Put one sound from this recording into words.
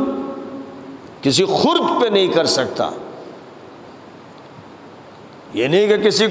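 An elderly man speaks calmly and slowly into a close microphone, with pauses between phrases.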